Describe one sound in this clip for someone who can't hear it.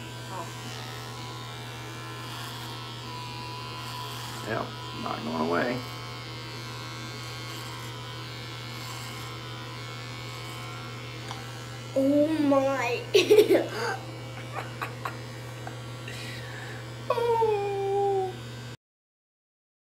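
Electric hair clippers buzz steadily close by.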